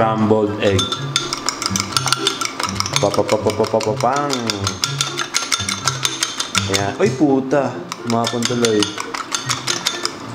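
A fork beats eggs briskly against a bowl, clinking rapidly.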